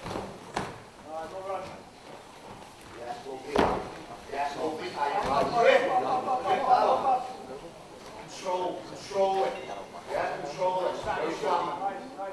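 A crowd of men shouts and cheers from close by.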